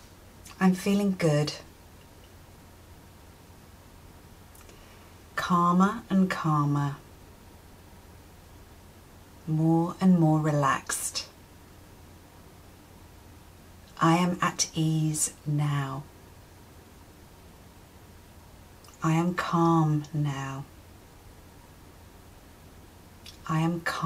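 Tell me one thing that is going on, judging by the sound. A woman speaks calmly and softly close to a microphone, in short phrases with long pauses.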